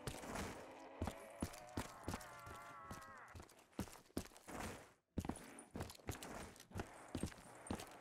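Footsteps thud on hard ground at a steady walking pace.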